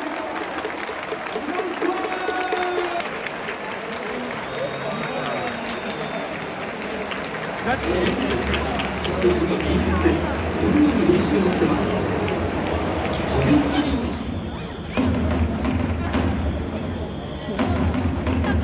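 A large stadium crowd cheers and chatters all around.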